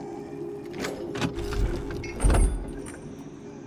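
Soft thuds sound as a small figure jumps onto wooden planks.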